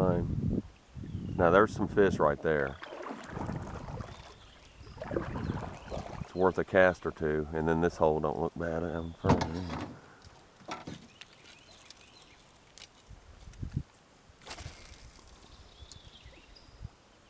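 River water ripples and laps gently against a canoe.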